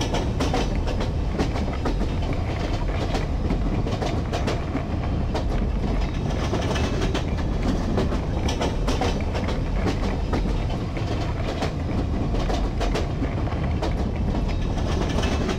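A hammer bangs against a heavy metal door.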